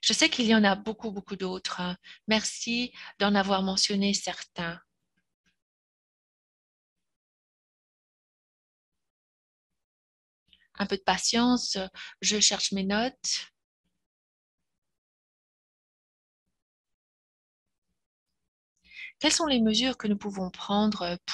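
A woman speaks calmly over an online call, in bursts with long pauses.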